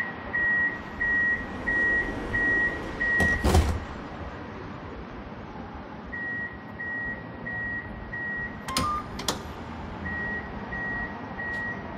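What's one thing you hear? A tram hums steadily while standing at a platform.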